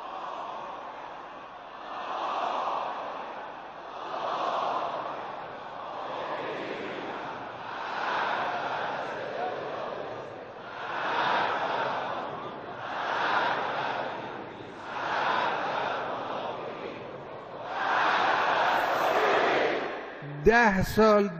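A large crowd chants in rhythmic unison outdoors.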